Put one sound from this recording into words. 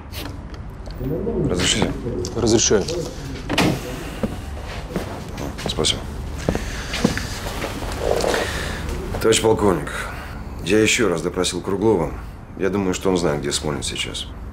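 A man speaks calmly and firmly nearby.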